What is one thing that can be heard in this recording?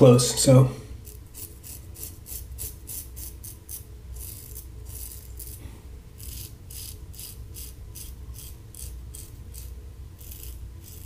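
A razor scrapes through stubble in short, quick strokes.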